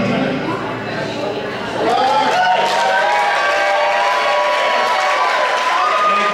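A cello is bowed with long, gliding notes.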